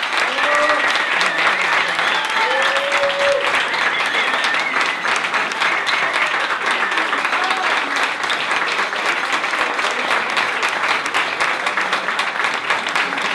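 An audience applauds loudly and steadily.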